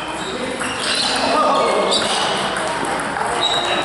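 A ping pong ball clicks off paddles and bounces on a table.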